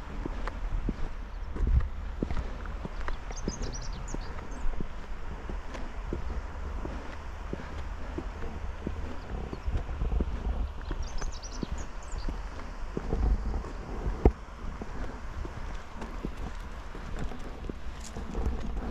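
Bicycle tyres roll steadily over smooth pavement.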